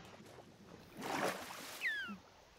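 Water splashes briefly.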